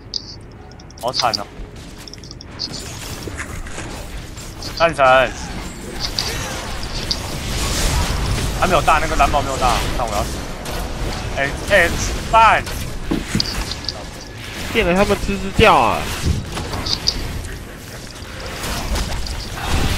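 Magic blasts and clashing weapons crackle and burst in a busy fight.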